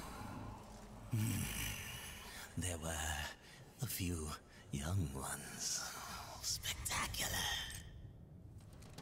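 A deep, monstrous male voice speaks slowly and menacingly.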